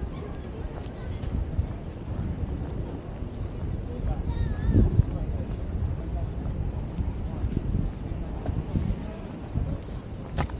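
Wind blows steadily and gusts outdoors.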